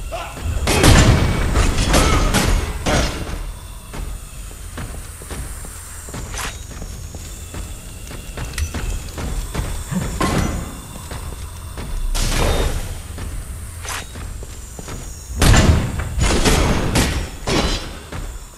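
Metal weapons clash and strike with loud impacts.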